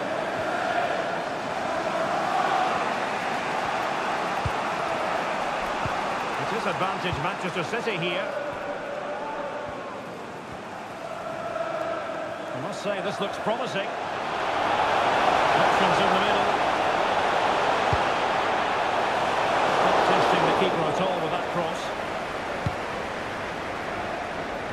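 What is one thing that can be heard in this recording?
A stadium crowd roars steadily, swelling louder for a while.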